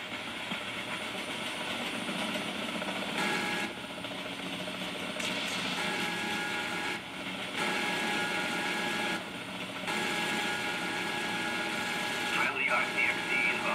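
A helicopter's engine and rotor drone steadily from a television speaker.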